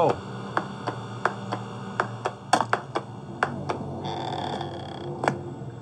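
Footsteps thud steadily on a hard floor, echoing slightly.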